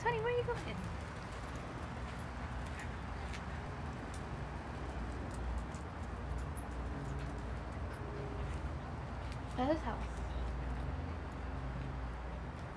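A dog's claws tap on a hard floor.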